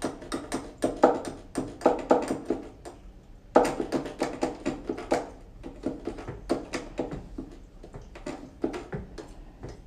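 Plastic keyboard keys clack and thump rapidly under quick fingers.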